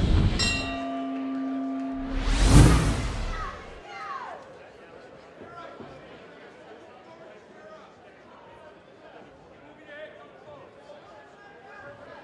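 A crowd murmurs in a large hall.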